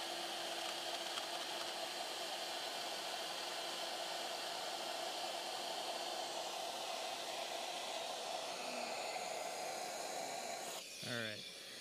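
A machine's fan hums steadily, then cuts out.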